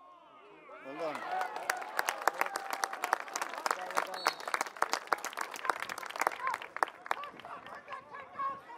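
Spectators clap and cheer nearby.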